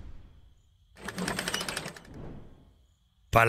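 Large gears turn with a rapid ratcheting clatter.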